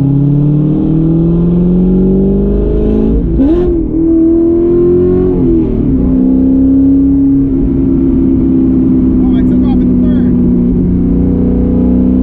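A car engine revs up loudly, rising in pitch and dropping as the gears shift.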